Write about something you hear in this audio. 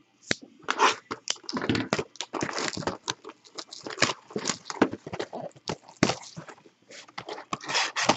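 Plastic wrapping crinkles and tears as it is pulled off a box.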